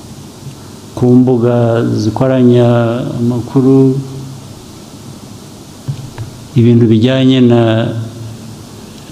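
A man speaks calmly and slowly into a microphone.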